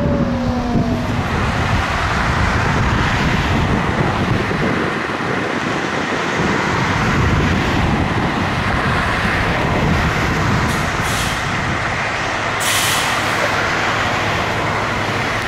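A fire engine's motor rumbles while idling.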